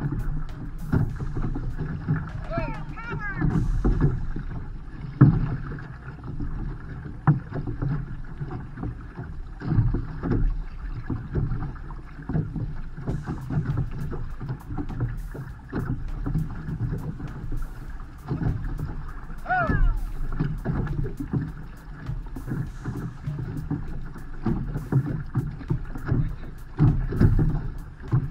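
Paddles splash and pull through choppy water in a steady rhythm.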